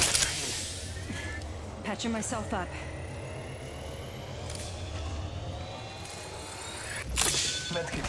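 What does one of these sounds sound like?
A healing device hums with a slowly rising whine.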